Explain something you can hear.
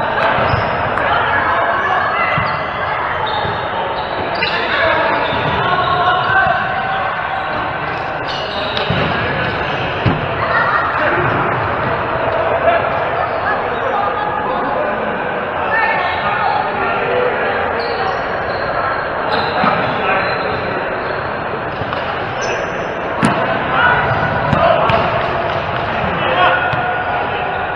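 A volleyball is struck by hands in a large echoing hall.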